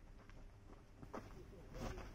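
A baseball bat cracks against a ball.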